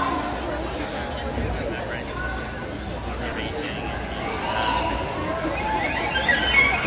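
A crowd chatters and cheers nearby.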